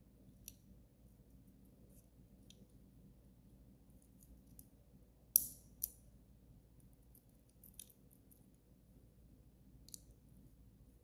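A small plastic circuit board clicks and taps softly as fingers handle it.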